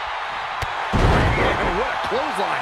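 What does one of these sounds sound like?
A body slams hard onto a wrestling ring with a heavy thud.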